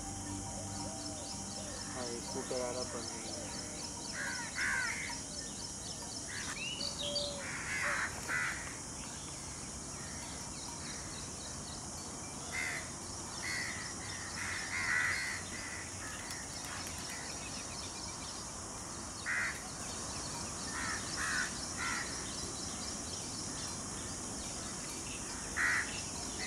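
A peacock rattles its fanned tail feathers.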